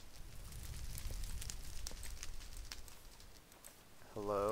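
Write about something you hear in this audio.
Footsteps crunch softly on grass.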